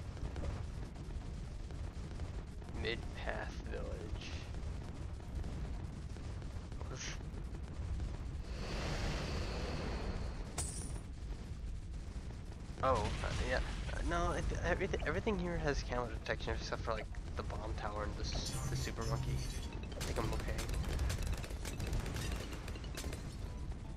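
Cartoon explosions pop and boom in a video game.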